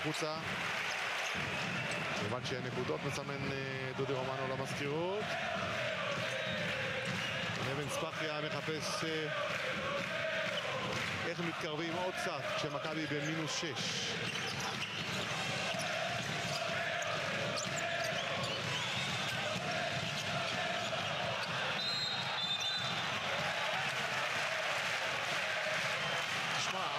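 A large indoor crowd cheers and chants steadily, echoing through the hall.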